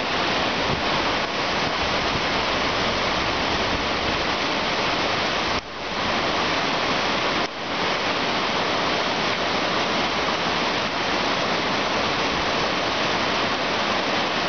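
White-water rapids roar loudly and steadily.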